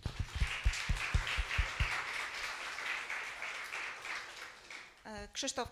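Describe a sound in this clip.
Applause rings out in a room.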